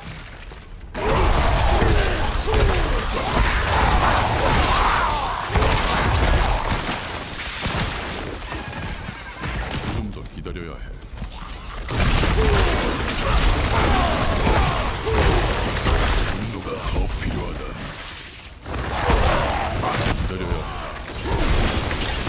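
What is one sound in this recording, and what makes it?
Spells crash and explode in loud bursts.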